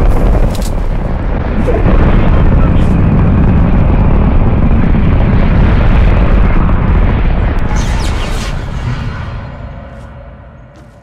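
Wind rushes loudly past a skydiver, then fades.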